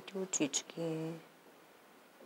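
A young girl speaks briefly and calmly, close to a microphone.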